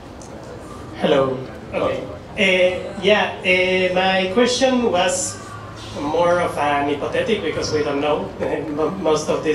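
A woman speaks calmly into a microphone, heard through loudspeakers in a large room.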